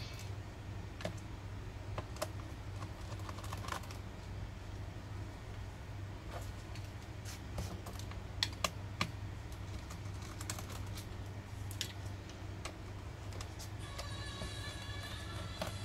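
Small plastic parts tap and knock on a hard surface.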